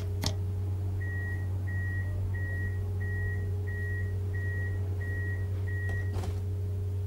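A tram's warning beeps sound at even intervals.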